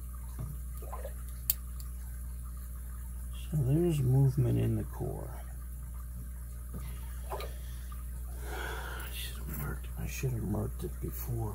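Metal picks scrape and click faintly inside a padlock.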